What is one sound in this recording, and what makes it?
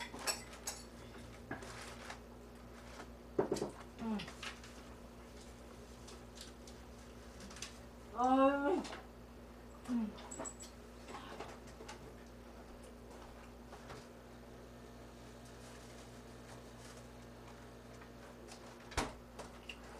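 Dishes and utensils clink and knock on a counter.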